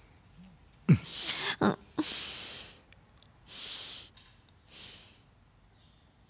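A young woman breathes heavily in her sleep.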